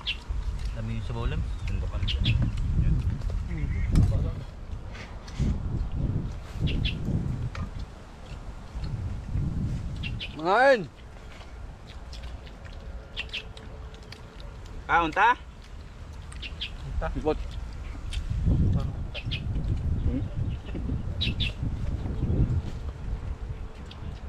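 Young men talk and laugh casually close by, outdoors.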